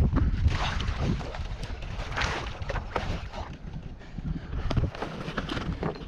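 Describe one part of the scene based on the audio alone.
Water splashes and laps against a kayak.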